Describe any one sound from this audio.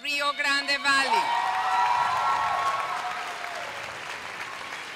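An audience cheers and applauds.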